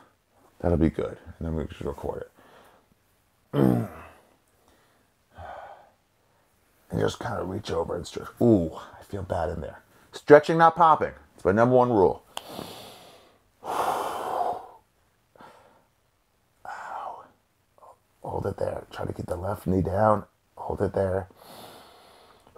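A man speaks calmly and clearly nearby, pausing between phrases.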